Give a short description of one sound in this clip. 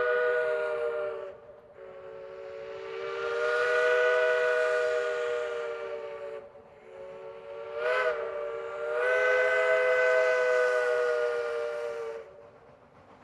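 A steam locomotive's whistle blows loudly in long blasts.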